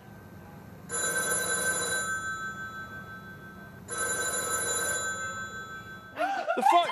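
A telephone rings with a shrill electronic trill.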